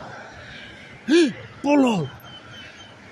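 A dog whines in short high yelps.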